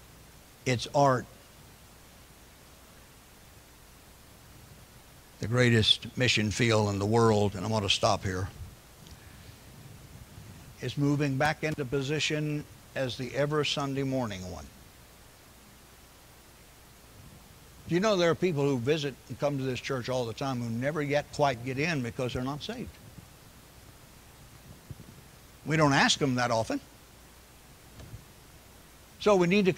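An elderly man speaks with emphasis into a microphone, with pauses between phrases.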